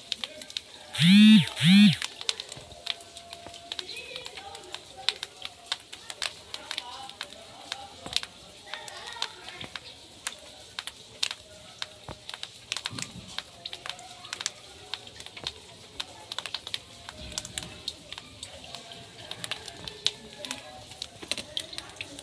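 Raindrops patter and splash into a puddle.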